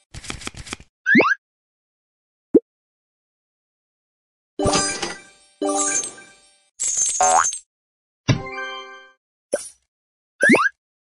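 A quick whooshing pop sweeps upward.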